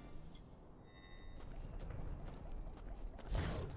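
Footsteps patter as a game character runs over sandy ground.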